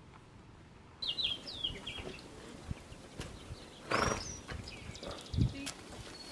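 A young woman speaks calmly to a horse.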